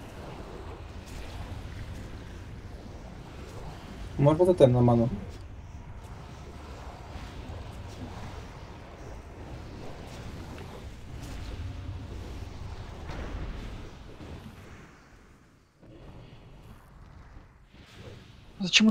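Magic spells crackle and whoosh during a battle in a video game.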